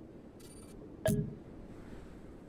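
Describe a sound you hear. A game menu opens with a short chime.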